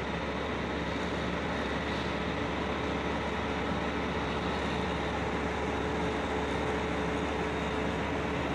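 Heavy machinery hums and drones steadily.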